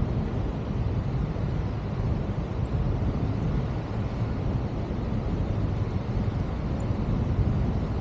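Wind rushes loudly and steadily past a microphone, outdoors high in the air.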